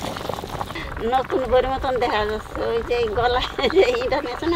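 An elderly woman talks with animation nearby.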